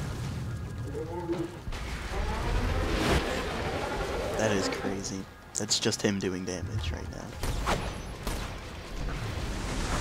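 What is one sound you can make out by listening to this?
A huge monster roars and growls.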